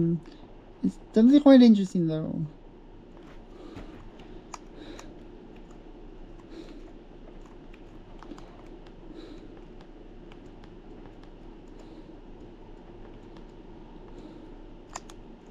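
Buttons on a handheld game console click softly.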